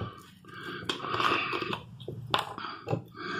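A man twists the cap off a plastic bottle.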